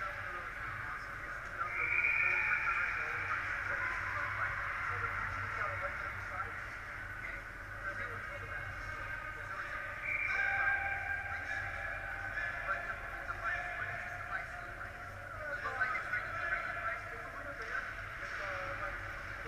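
Skates scrape on ice far off in a large echoing hall.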